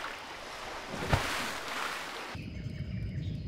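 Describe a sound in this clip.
A body splashes into water.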